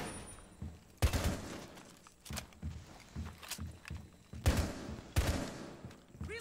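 A rifle fires loud sharp shots indoors.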